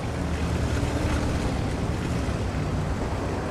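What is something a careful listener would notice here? Water splashes around a tank driving through shallow surf.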